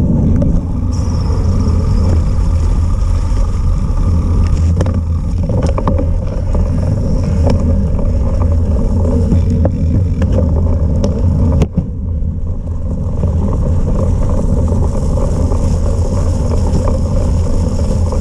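Wind rumbles steadily against a microphone outdoors.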